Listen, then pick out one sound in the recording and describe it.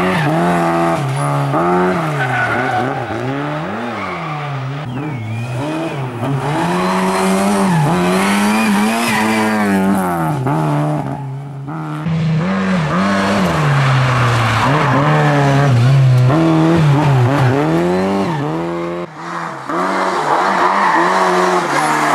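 A rally car engine roars and revs hard nearby, rising and dropping in pitch with each gear change.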